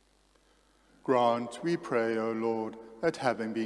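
A man sings or chants loudly through a microphone in an echoing room.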